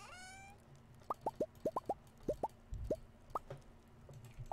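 Short game blips pop in quick succession.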